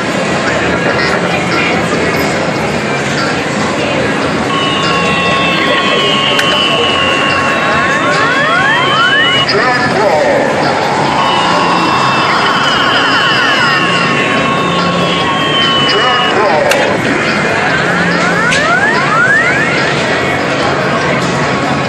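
A noisy arcade hums with overlapping machine sounds.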